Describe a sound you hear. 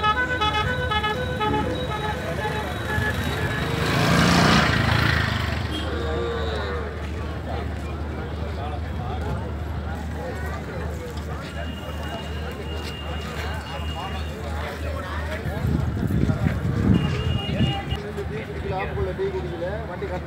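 A crowd murmurs and calls out outdoors in the distance.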